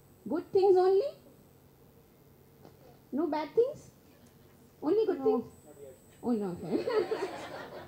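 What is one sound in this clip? A young boy speaks in short phrases through a microphone, over a loudspeaker.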